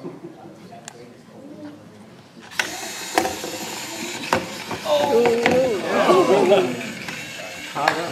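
Small electric motors whir as two toy robots push against each other.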